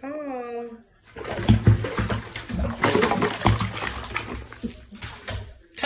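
Water splashes loudly as a cat thrashes in a bath.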